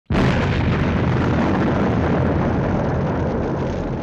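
A huge explosion booms with a deep rumble.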